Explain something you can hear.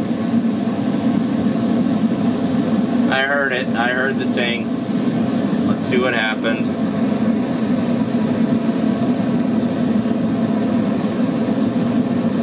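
A gas forge roars steadily.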